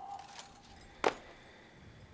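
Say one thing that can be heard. Rifles clack sharply as guards handle them.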